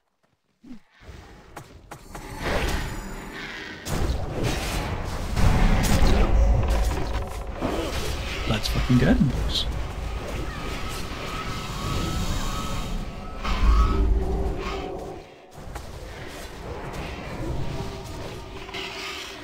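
Weapons clash and spells burst in a noisy fantasy battle.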